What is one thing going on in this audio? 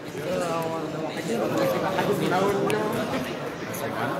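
A crowd of people chatter around.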